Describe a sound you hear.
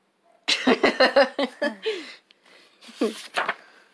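A page of a book turns with a papery rustle.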